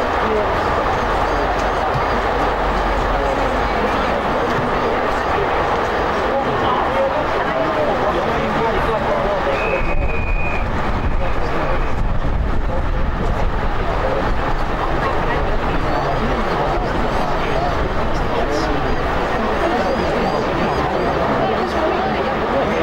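Players shout and call out across an open field.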